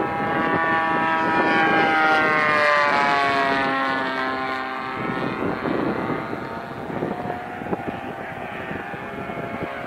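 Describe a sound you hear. A model airplane engine buzzes loudly, its pitch dropping as it taxis away.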